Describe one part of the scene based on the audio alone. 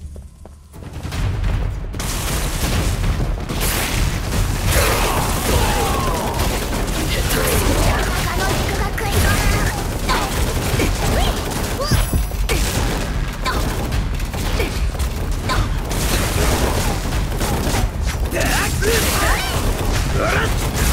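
Gunfire and blasts crackle in rapid bursts.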